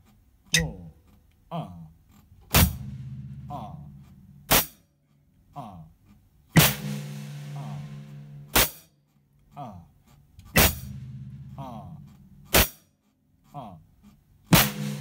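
A hi-hat ticks softly between the drum hits.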